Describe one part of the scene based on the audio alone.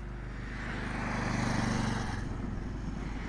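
A motorcycle engine roars past on a road.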